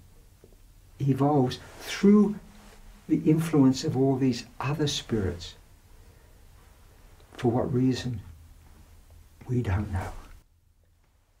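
An elderly man speaks calmly and expressively into a microphone.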